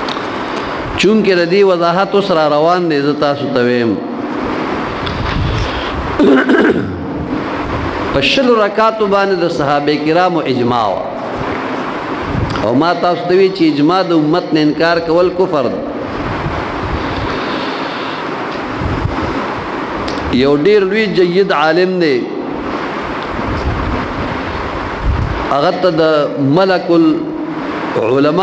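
An elderly man chants slowly and melodiously into a microphone, in bursts with pauses.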